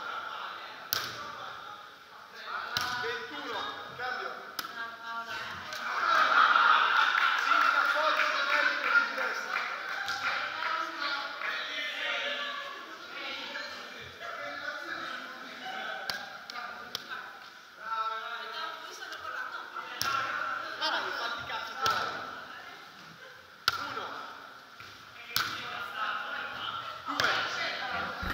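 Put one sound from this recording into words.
Young women talk and call out in a large echoing hall.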